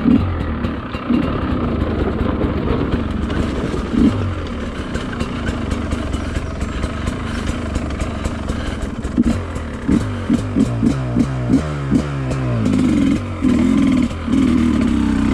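A dirt bike engine runs close by, revving up and down in short bursts.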